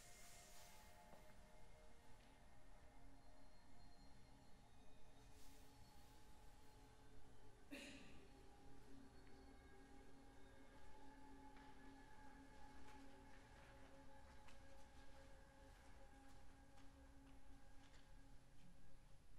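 A small ensemble of strings and winds plays softly in a large, echoing concert hall.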